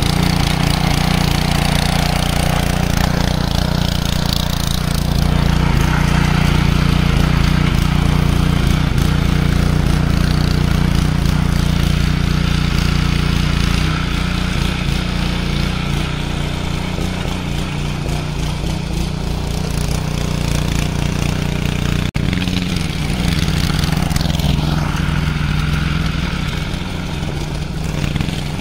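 Tiller blades churn through soil.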